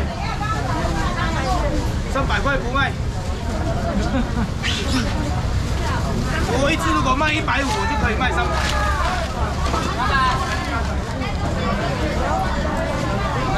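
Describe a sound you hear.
A crowd of men and women chatters all around, close by.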